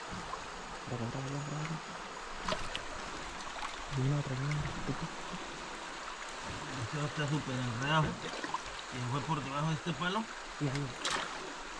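A man speaks quietly nearby outdoors.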